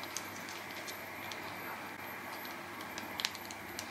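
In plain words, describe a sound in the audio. A thick sauce drips from a sachet into a bowl.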